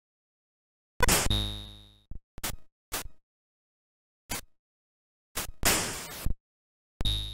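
Noisy electronic bursts from a retro video game crackle and fade.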